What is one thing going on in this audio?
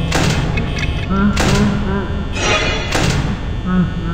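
A heavy metal door slams shut.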